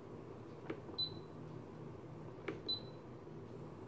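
An electronic instrument gives a short high beep.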